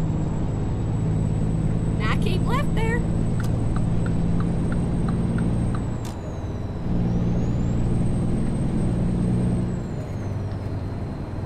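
A truck engine hums steadily, easing off briefly before pulling again.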